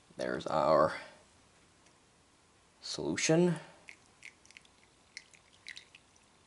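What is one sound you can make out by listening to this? Liquid trickles softly as it is poured into a funnel.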